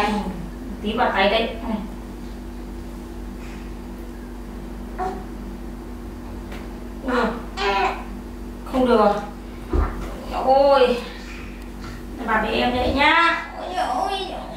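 A young woman talks softly and playfully close by.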